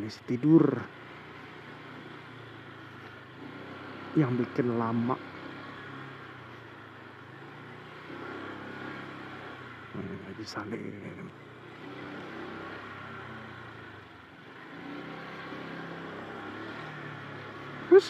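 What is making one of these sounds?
A motorbike engine hums steadily at low speed.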